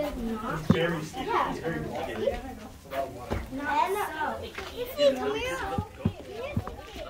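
Children talk with animation close by.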